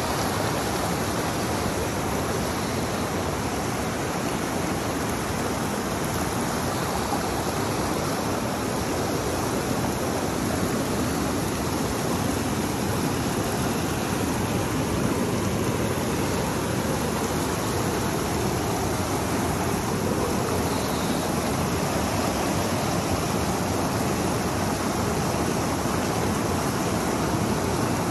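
A shallow mountain stream rushes and gurgles steadily over rocks close by.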